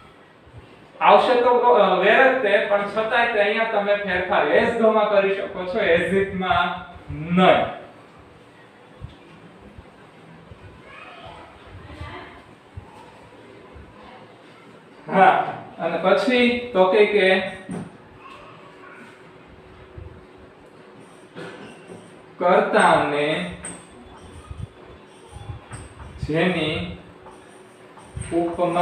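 A young man speaks clearly and calmly, close by.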